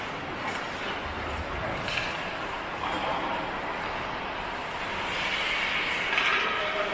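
Ice skates scrape and carve across ice in a large echoing indoor rink.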